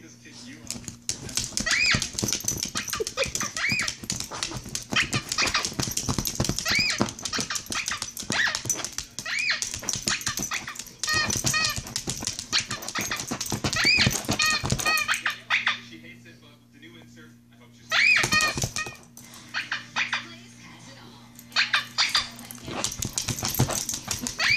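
A dog's claws tap and scratch rapidly on a tablet's glass.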